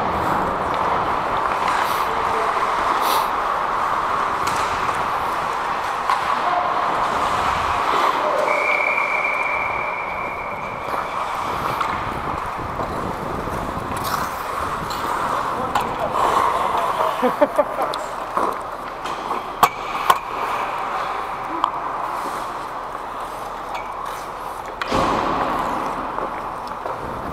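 Ice skates scrape and hiss on the ice in a large echoing hall.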